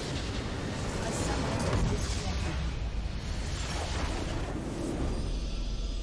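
A heavy explosion booms and rumbles.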